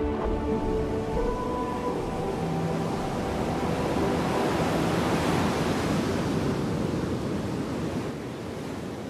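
Large waves crash and roar.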